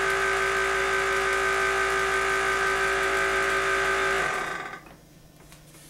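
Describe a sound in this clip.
An electric blower whirs loudly and steadily, then winds down and stops.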